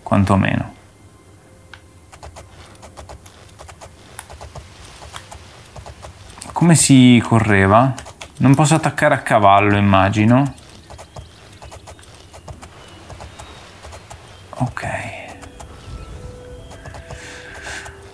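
Horse hooves clop on stone as a horse walks.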